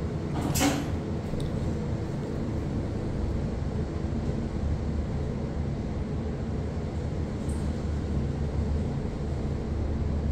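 A lift car hums and rumbles low and steadily as it travels.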